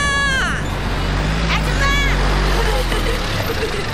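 Cars drive past on a street outdoors.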